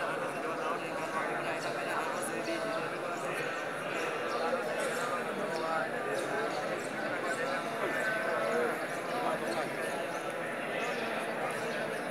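Many men murmur and chant together in a large echoing hall.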